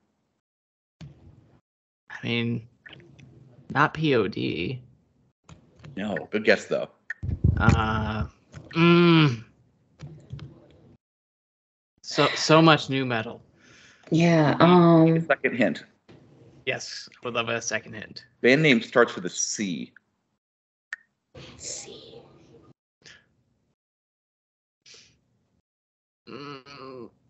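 A man talks casually over an online call.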